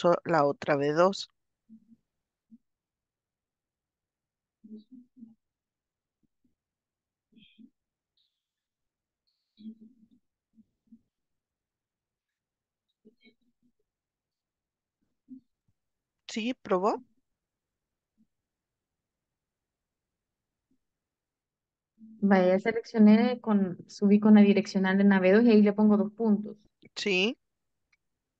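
A woman speaks calmly over an online call, in short bursts with long pauses.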